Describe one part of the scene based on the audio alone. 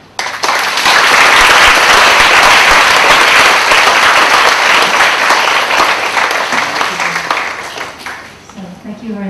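A large audience applauds loudly in an echoing hall, then the applause fades.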